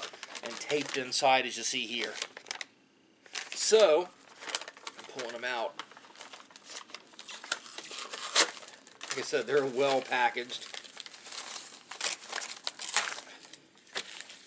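Paper rustles and crinkles in a man's hands.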